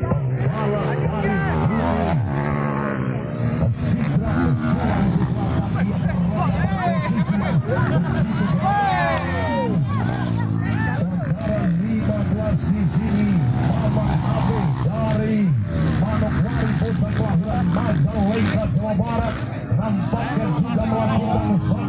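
Motorbike engines rev and whine loudly, rising and falling in pitch.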